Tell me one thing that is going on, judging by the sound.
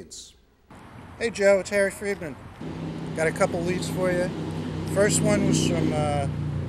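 An older man talks on a phone outdoors.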